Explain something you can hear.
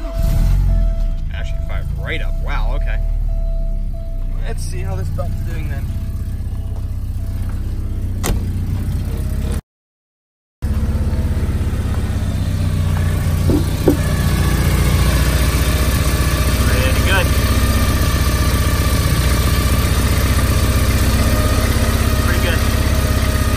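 A car engine idles with a steady low rumble.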